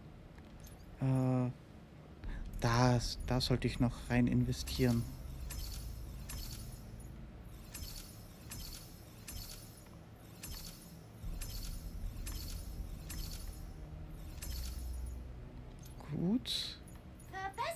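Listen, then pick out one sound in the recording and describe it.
Game menu sounds blip and click in quick succession.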